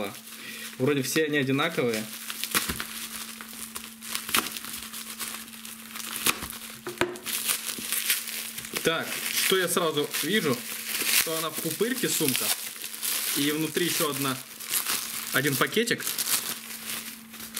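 Bubble wrap and plastic wrapping crinkle and rustle close by.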